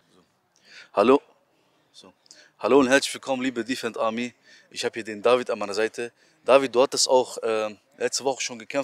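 A man speaks close into a microphone with animation.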